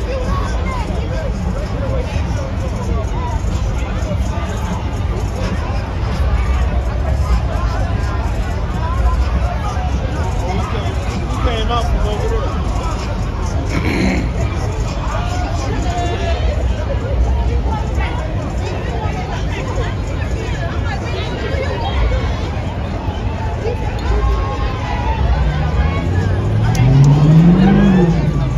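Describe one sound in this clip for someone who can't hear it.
A crowd of people chatter and call out nearby outdoors.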